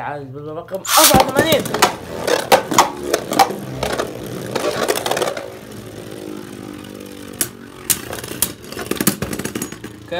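Spinning tops clash with sharp clicks.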